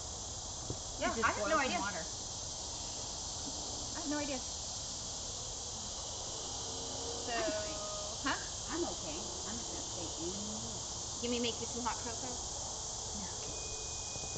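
Young women talk and laugh nearby.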